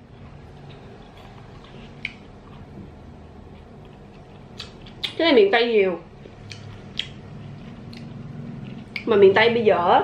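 A young woman chews and smacks her lips while eating fruit.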